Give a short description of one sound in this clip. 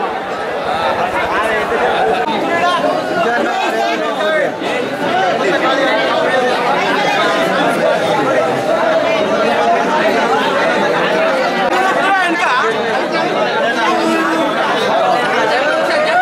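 A large crowd of men chatters and calls out in a busy, echoing space.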